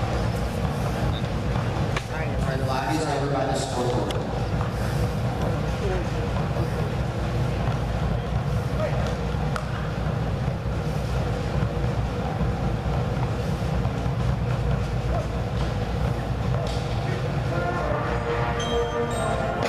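A marching band plays brass and drums in a large echoing hall.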